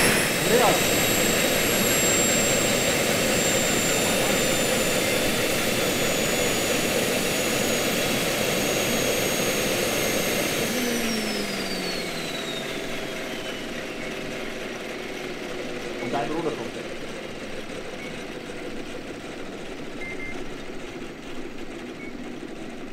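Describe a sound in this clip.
Model helicopter rotor blades swish as they slow.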